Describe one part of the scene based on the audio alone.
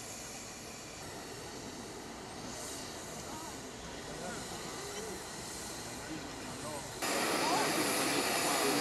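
A crowd of adult men and women murmurs and talks outdoors.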